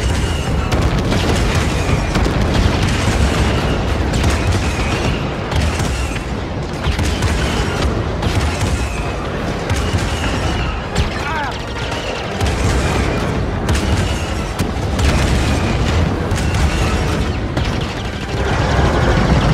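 Explosions boom and crackle outside.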